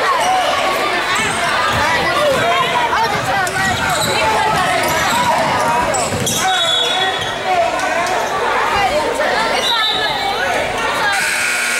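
A basketball bounces with dull thumps on a wooden floor.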